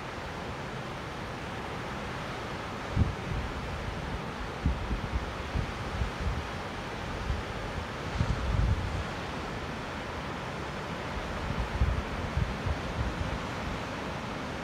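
Sea waves wash steadily in the distance.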